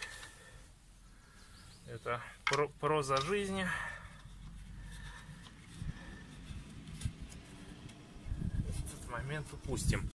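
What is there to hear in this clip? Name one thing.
A metal wheel nut clicks and scrapes as it is turned by hand.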